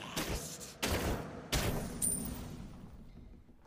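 Magic blasts crash and whoosh in quick bursts, then fade.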